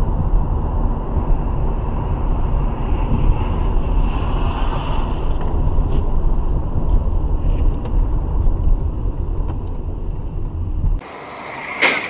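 A car engine hums steadily with tyres rumbling on the road, heard from inside the car.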